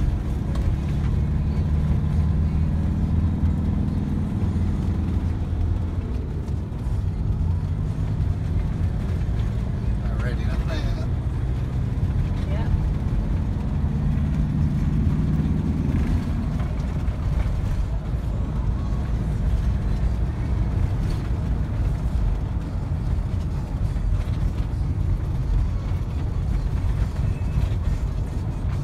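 A vehicle engine hums steadily while driving along a road.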